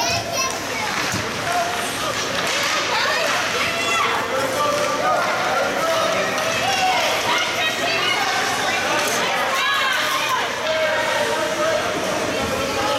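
A crowd of spectators chatters and calls out in an echoing rink.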